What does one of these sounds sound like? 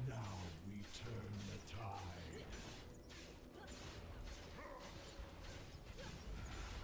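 Magic spells crackle and burst in a fast fantasy battle.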